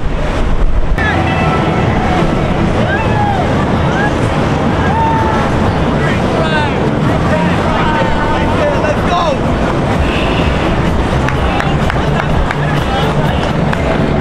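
Young women cheer and whoop.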